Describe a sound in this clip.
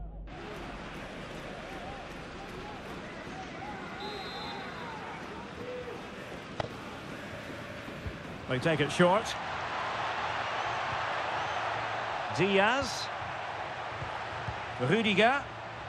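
A stadium crowd roars and cheers steadily, growing louder midway.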